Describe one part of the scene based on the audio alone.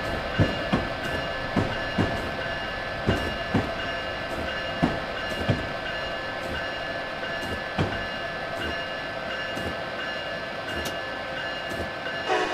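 Train wheels thump over rail joints at uneven intervals.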